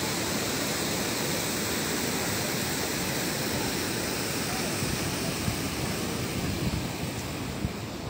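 Water rushes and splashes over a weir.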